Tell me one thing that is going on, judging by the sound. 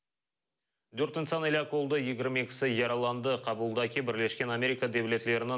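A young man speaks calmly and clearly into a microphone.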